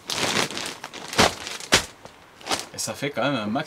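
Plastic sheeting crinkles and rustles.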